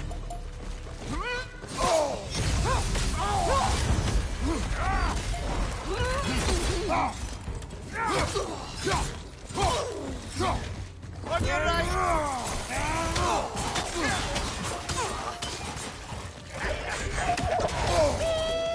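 Weapons clash and thud in a video game fight.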